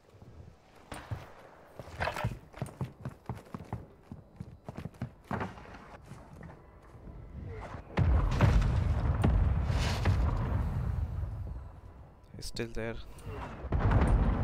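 Footsteps thud across a creaky wooden floor.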